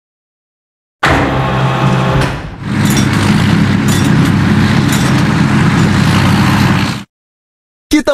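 A small excavator engine rumbles and whirs steadily.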